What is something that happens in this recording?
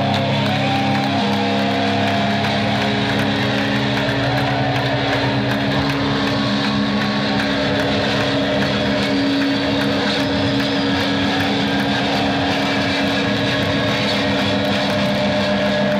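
A loud rock band plays distorted electric guitars.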